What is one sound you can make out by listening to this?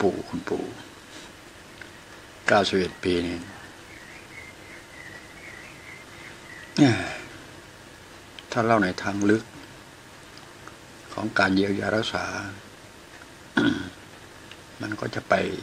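An elderly man speaks calmly in short bursts, close by.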